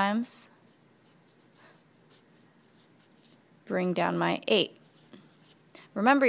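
A marker squeaks softly across paper.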